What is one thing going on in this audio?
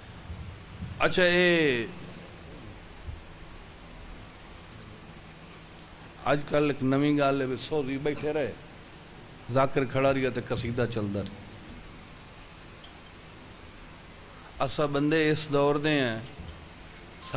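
A man recites loudly and with feeling into a microphone, heard through loudspeakers, in long sung phrases with pauses between them.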